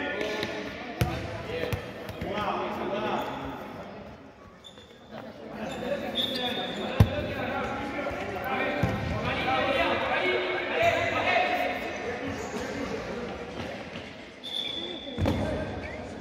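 A ball thuds off a foot and bounces on a hard floor.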